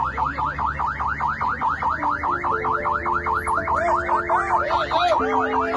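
A siren yelps rapidly and steadily nearby.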